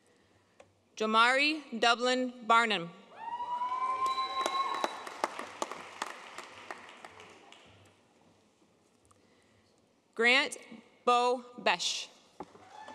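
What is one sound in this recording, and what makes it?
A woman reads out names through a microphone in a large hall.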